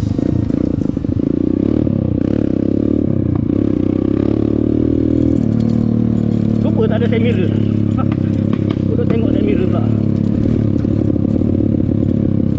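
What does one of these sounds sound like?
A motorcycle engine drones steadily up close.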